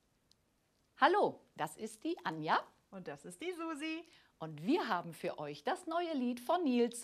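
A woman speaks cheerfully and clearly, close to a microphone.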